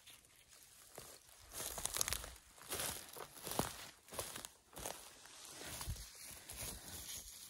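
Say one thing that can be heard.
Footsteps crunch and rustle through dry grass and twigs.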